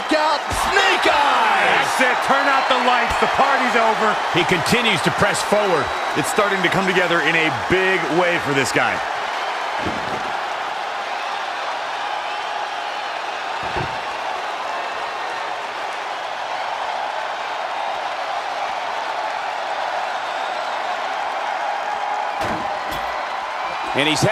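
A large crowd cheers and roars steadily in a big echoing arena.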